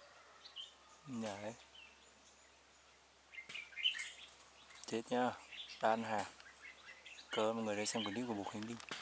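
A bird calls with low, warbling hoots, several times.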